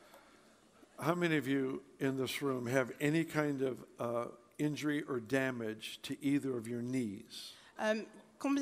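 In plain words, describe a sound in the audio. An older man speaks calmly through a microphone in a large hall.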